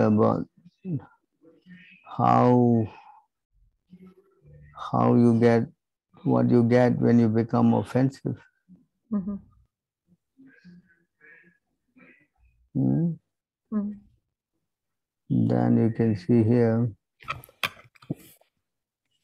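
An elderly man speaks calmly in short phrases, heard through an online call.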